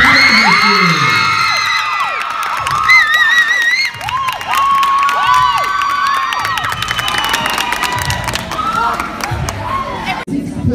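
Young women scream and shriek with excitement close by.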